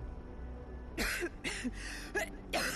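A young woman coughs harshly several times.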